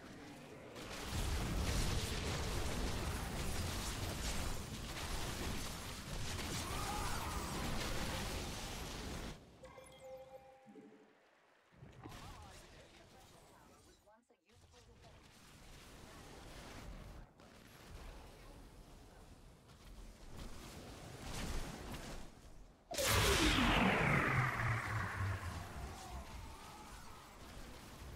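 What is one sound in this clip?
Gunfire and explosions rattle in a loud battle.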